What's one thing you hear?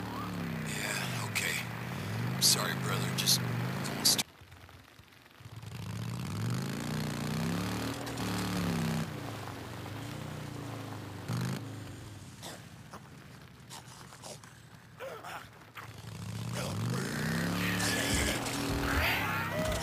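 Tyres crunch over dirt and grass.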